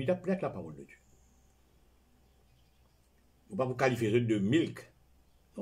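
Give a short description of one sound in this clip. An elderly man speaks calmly and close by, with pauses.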